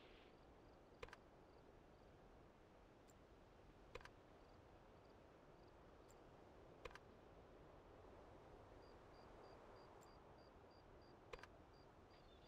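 Short soft clicks sound now and then as menu buttons are pressed.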